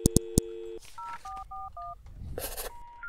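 Telephone keypad buttons beep in quick tones.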